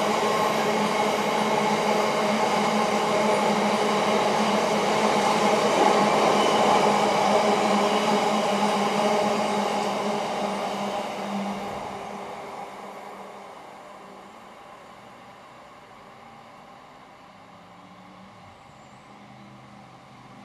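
A train rumbles along the rails with a steady humming whine, then gradually quietens.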